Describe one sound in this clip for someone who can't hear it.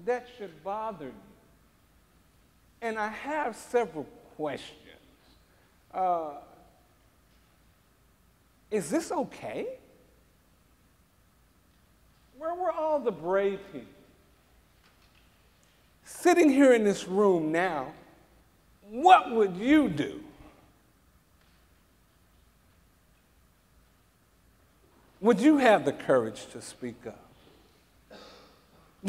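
A man speaks through a microphone with animation in a large echoing hall, pausing often.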